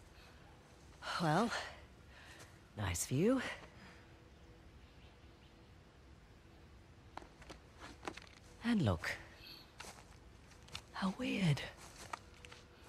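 A young woman speaks calmly nearby.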